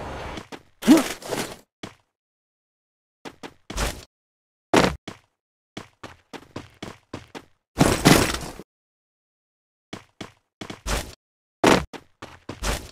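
Footsteps run quickly over grass and ground.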